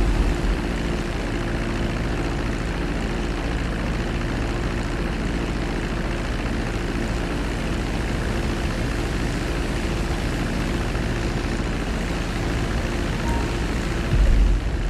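Wind rushes past a low-flying plane.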